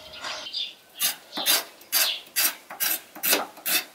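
A knife chops carrots on a wooden board.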